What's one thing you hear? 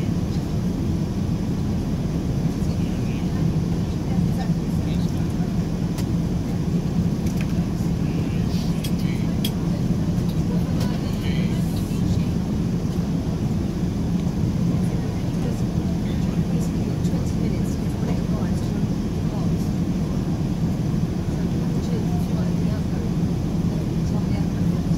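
A jet airliner's engines drone steadily in the cabin.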